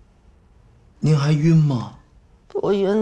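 A middle-aged man asks a question gently, close by.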